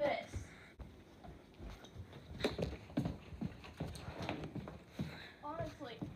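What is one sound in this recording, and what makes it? Footsteps hurry across a wooden floor.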